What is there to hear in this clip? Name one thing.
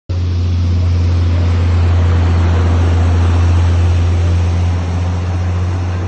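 A large vehicle engine idles with a deep, steady rumble.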